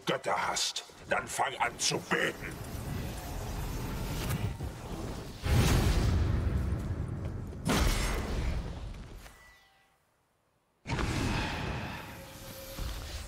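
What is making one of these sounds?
Sword blows strike and thud in a fight.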